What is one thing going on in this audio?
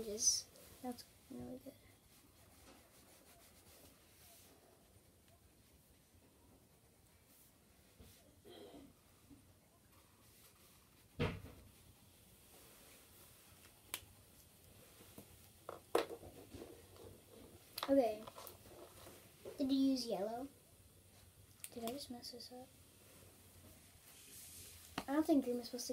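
Pencils scratch softly on paper.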